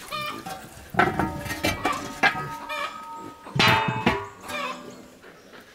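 A metal lid clangs and rings on a pot.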